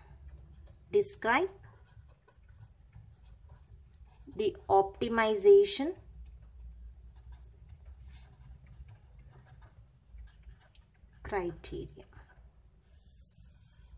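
A marker pen squeaks and scratches across paper.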